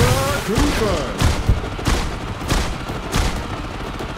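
Gunshots pop in quick bursts in a video game.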